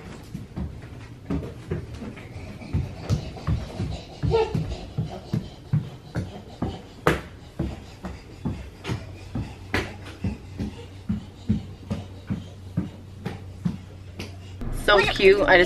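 A baby's hands slap on a wooden floor while crawling.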